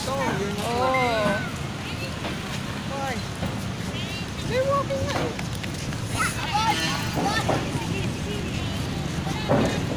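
Children shout and squeal outdoors.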